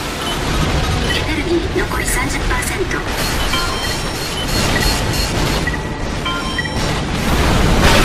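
Electronic beeps chirp now and then.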